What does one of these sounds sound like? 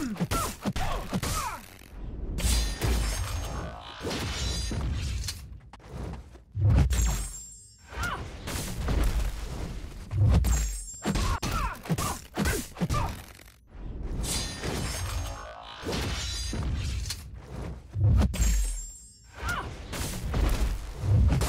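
Sword blows clash and strike with heavy thuds.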